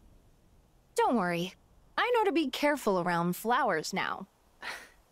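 A young woman speaks gently and calmly.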